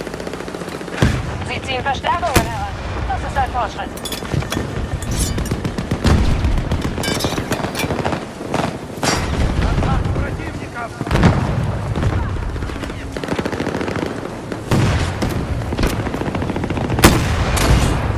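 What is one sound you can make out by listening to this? Sniper rifle shots crack loudly, one at a time, with echoes.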